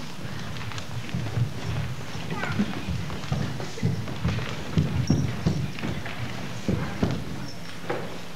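Feet thump on a stage as dancers move.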